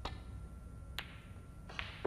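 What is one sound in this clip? Snooker balls clack against each other.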